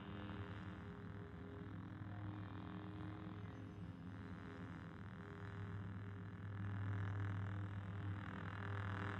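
A lightsaber hums low and steady.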